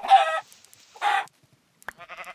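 A chicken squawks when struck.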